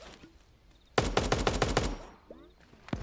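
Rapid video game gunfire rattles in a short burst.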